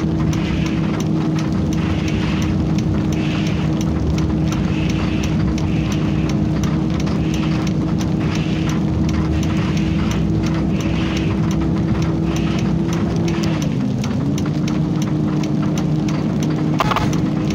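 A bus engine hums steadily, dipping briefly in pitch as the gear shifts.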